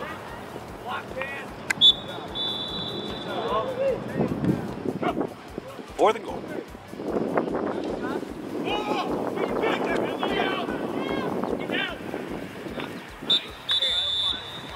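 Players shout to each other outdoors.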